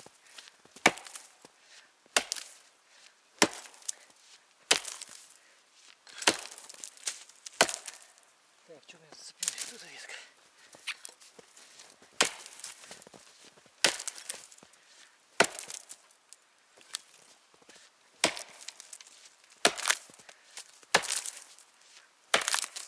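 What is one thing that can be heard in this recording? An axe chops into a tree trunk with sharp, regular thuds.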